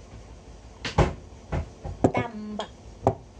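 A wooden pestle knocks against a mortar.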